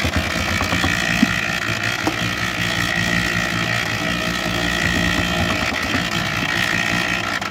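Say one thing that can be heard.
A cement mixer drum rumbles and hums steadily as it turns.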